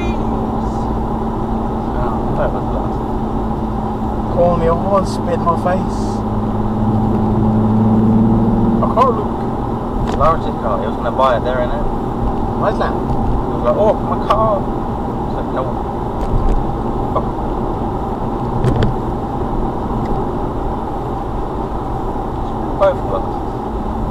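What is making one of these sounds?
A car drives steadily along a road, its engine and tyres rumbling.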